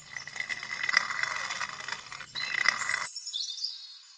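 A plastic toy fence clicks as it is set down on a hard floor.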